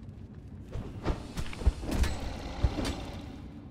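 Heavy blows strike a creature with sharp thuds.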